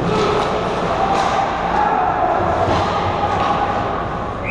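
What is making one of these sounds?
Hockey sticks clack against a puck and each other on ice.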